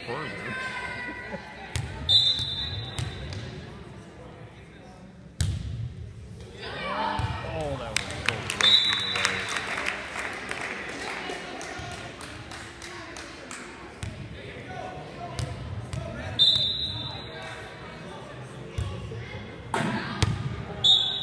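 A volleyball is struck with a hard slap, echoing in a large hall.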